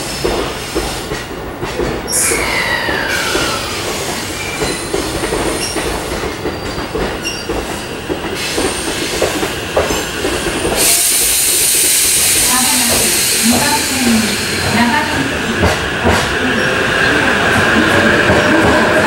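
An electric train rolls into the station with a rising hiss and rumble.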